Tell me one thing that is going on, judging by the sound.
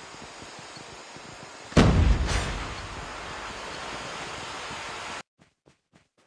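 Wind rushes steadily during a fall through the air.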